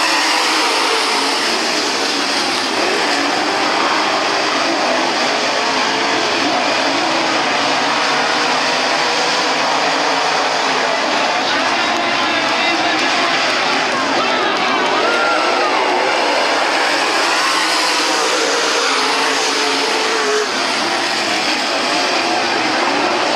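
A crowd murmurs and cheers nearby.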